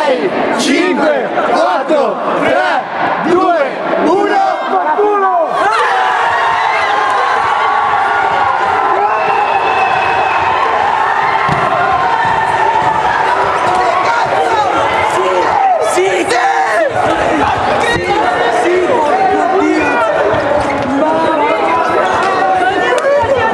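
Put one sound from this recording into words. A crowd of young men shouts and cheers in an echoing hall.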